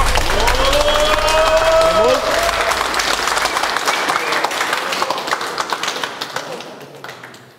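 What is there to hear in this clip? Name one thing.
A crowd cheers and shouts loudly in a large room.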